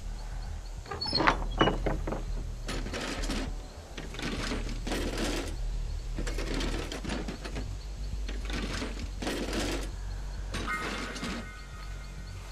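Items rattle and clatter as a chest is rummaged through.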